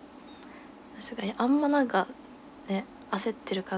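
A young woman speaks brightly and close to a microphone.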